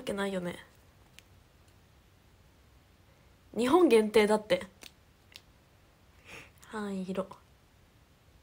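A young woman speaks softly and casually, close to a microphone, in short bursts.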